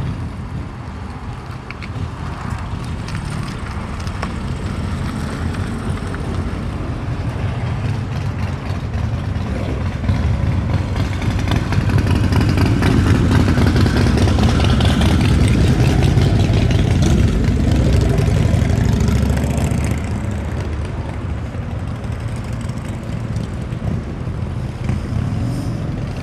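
A sports car engine rumbles deeply and steadily.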